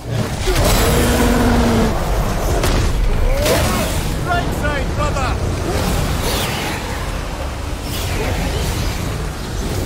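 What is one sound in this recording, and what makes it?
An axe strikes a beast with heavy thuds.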